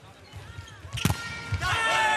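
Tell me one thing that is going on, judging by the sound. A volleyball is spiked hard with a sharp smack.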